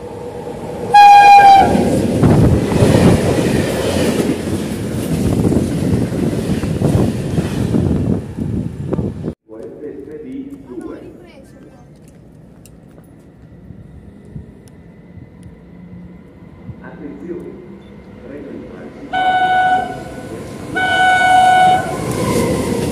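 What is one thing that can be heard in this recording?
A train horn blares loudly.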